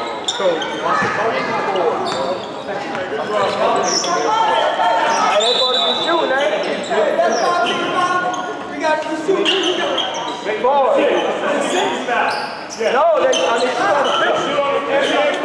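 Several people talk and call out in a large echoing gym.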